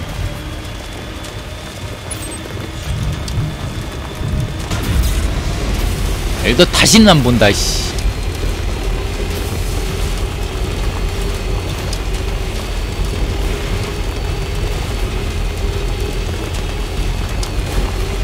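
Tyres crunch over rocky gravel.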